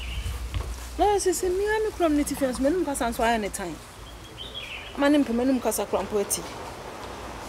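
A young woman speaks close by with feeling.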